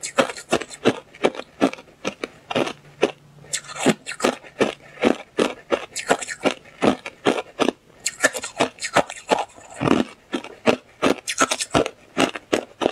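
Ice crunches loudly and crisply between teeth, close to a microphone.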